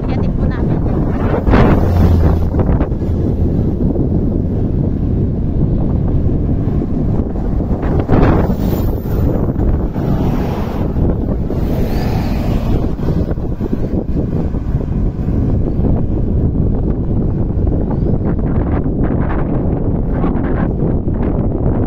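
Strong wind roars across the microphone outdoors.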